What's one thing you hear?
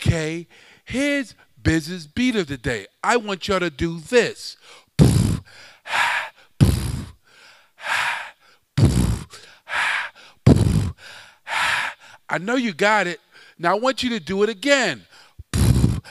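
A man makes wavering, sliding vocal tones into a microphone.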